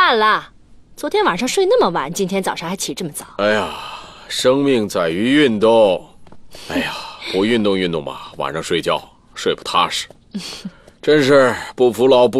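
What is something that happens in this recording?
A middle-aged man answers, talking with animation.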